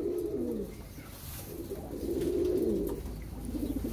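A pigeon's wings flap briefly.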